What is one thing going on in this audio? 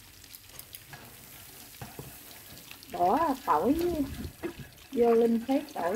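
Chopsticks scrape and stir in a pan.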